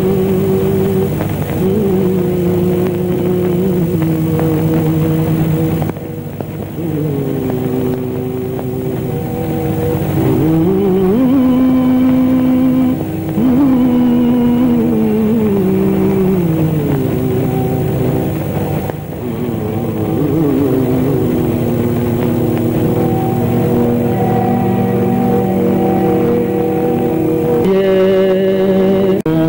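A man sings a slow, drawn-out melody.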